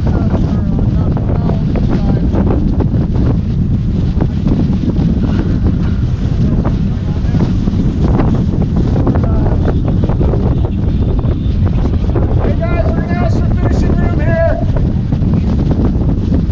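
Men talk and call out to each other nearby.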